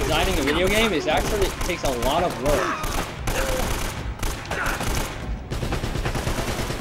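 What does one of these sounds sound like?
A rifle fires in rapid bursts of shots.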